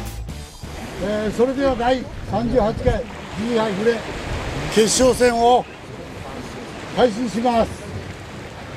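An older man talks loudly and with animation.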